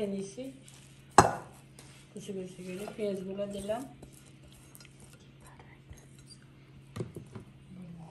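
A hand mixes sliced vegetables, squelching and rustling.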